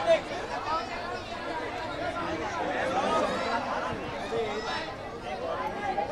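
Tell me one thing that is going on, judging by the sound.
A crowd of men and women chatter and shout excitedly close by.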